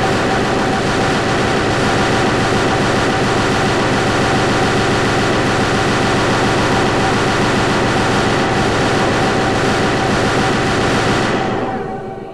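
A video game energy beam roars and crackles continuously.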